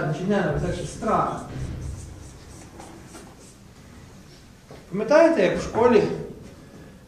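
A man speaks with animation in a room with a slight echo.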